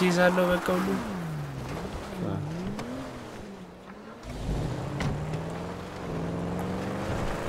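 A car engine revs up and pulls away.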